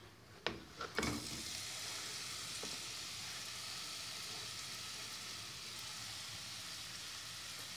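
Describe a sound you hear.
Onion sizzles steadily in hot oil.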